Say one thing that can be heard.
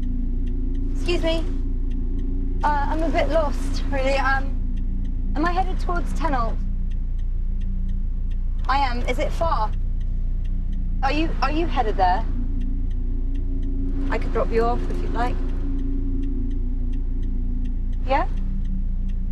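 A man speaks from just outside a car window, muffled by the glass.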